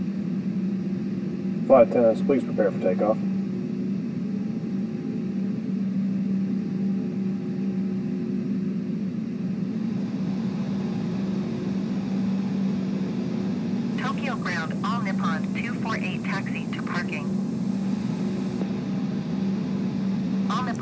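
A steady low engine hum drones throughout.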